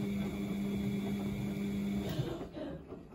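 An appliance hums steadily, then falls silent.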